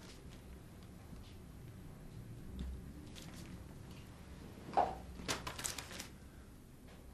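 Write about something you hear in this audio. Newspaper pages rustle.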